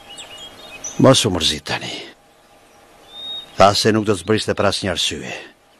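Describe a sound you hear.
A man with a low voice speaks calmly, close by.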